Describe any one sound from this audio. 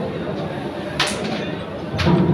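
A carrom striker is flicked and clacks sharply against wooden pieces.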